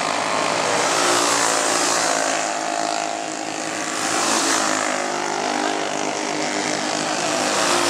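Race car engines roar loudly as the cars speed past.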